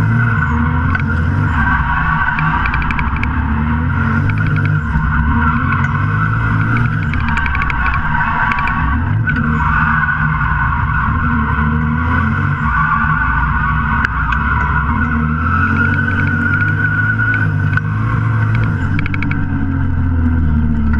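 A car engine roars loudly from inside the cabin, revving up and down as gears change.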